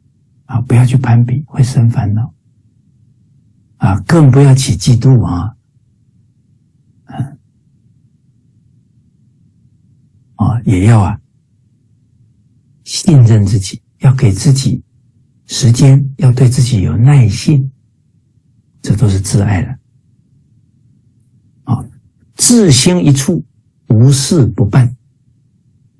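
A middle-aged man speaks calmly in short phrases over an online call, with pauses between them.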